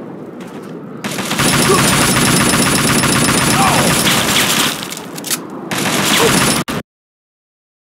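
An assault rifle fires in rapid bursts.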